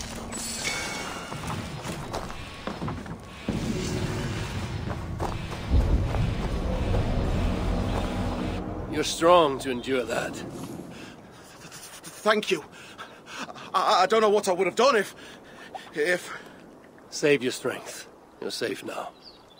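A young man speaks shakily and haltingly, close by.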